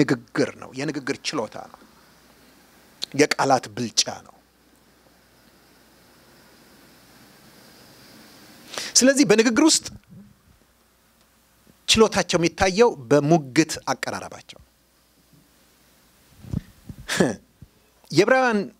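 A middle-aged man preaches with animation into a microphone, pausing between phrases.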